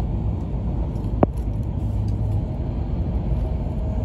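A train briefly rushes past a trackside wall with a whoosh.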